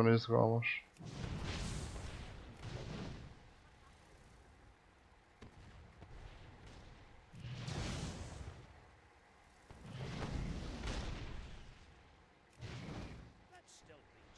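Blasts boom in short bursts.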